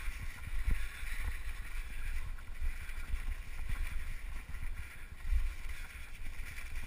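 Wind rushes past in low, steady buffeting.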